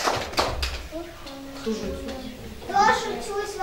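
A young girl speaks clearly, close by.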